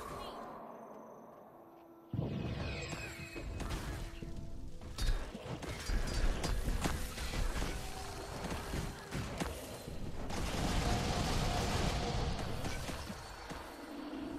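Spells crackle and blast in a game fight.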